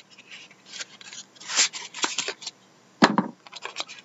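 A cardboard lid slides off a box.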